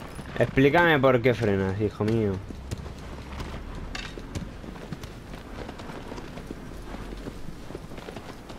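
A horse gallops with hooves thudding on grass.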